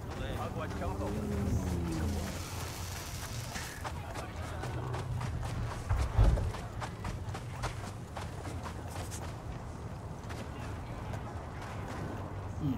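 Footsteps run quickly over sand.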